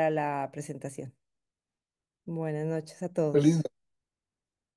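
A young woman speaks briefly through an online call.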